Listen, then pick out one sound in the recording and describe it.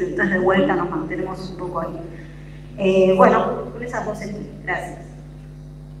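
A woman speaks through a loudspeaker on an online call, in a room that echoes.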